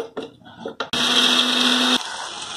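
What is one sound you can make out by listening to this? An electric grinder whirs loudly.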